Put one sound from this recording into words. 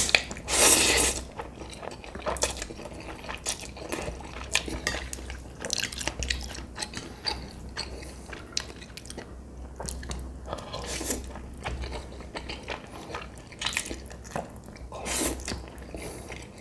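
A man slurps noodles loudly, close to the microphone.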